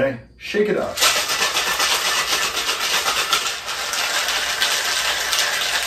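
Ice rattles in a metal cocktail shaker.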